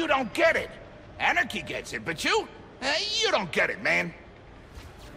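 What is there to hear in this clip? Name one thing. A man speaks agitatedly, close by.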